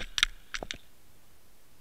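Knocks sound against stones underwater.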